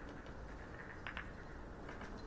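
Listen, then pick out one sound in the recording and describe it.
A cue taps a ball sharply.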